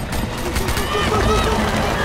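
A crowd screams and shouts in panic.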